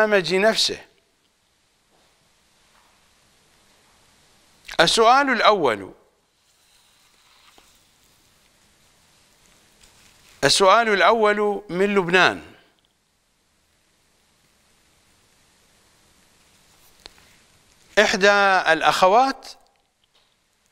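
A middle-aged man speaks into a microphone in short, measured phrases, with long pauses.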